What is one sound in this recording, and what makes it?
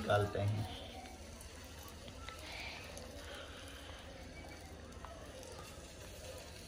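A metal spoon scrapes and clinks against a wok.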